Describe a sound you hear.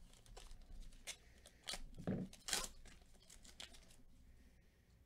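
A foil wrapper crinkles as hands tear it open.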